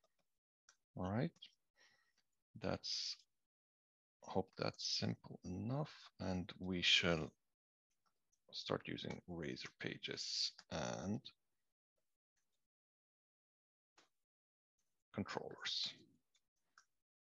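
A man talks calmly and close to a microphone, in short phrases.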